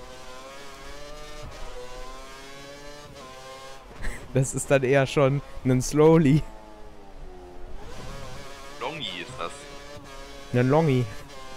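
A racing car engine whines at high revs, rising and falling as it shifts gears.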